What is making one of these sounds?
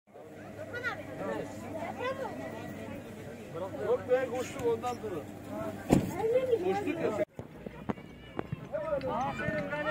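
A crowd of children chatter and call out excitedly nearby.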